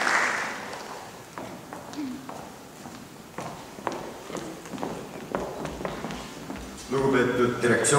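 Heels click on a hard floor as women walk away.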